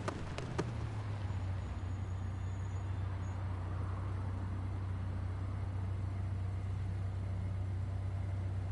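A car engine idles with a low steady rumble.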